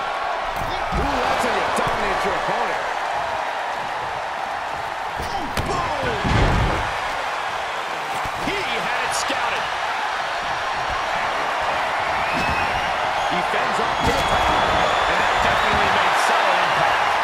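Heavy bodies slam onto a wrestling ring mat with loud thuds.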